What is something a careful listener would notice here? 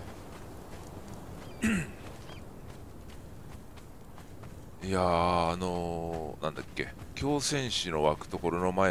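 Footsteps crunch on leafy ground.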